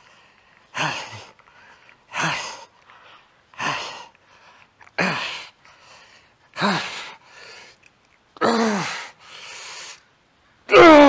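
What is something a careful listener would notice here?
A man grunts and breathes out hard with each lift.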